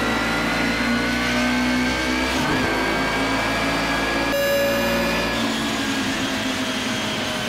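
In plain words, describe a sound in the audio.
A racing car engine roars and whines at high revs.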